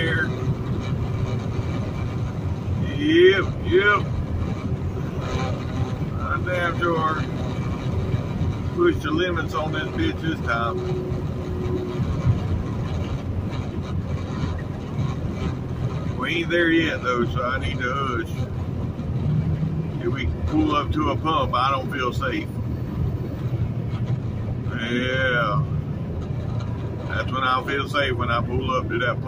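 A truck engine rumbles steadily while driving on a highway.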